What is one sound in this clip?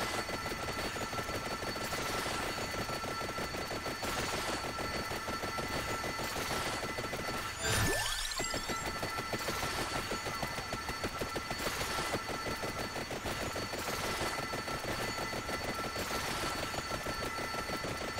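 Fireballs whoosh across the field again and again.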